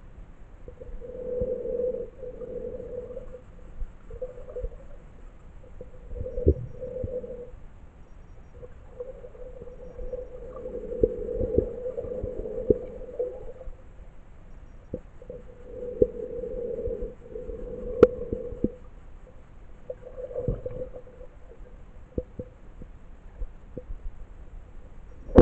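Water gurgles and burbles, muffled as if heard from under the surface.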